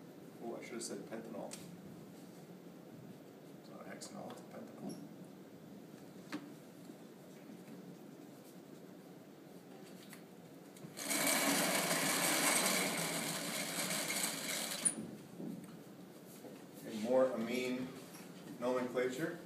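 A middle-aged man speaks calmly, like a teacher explaining.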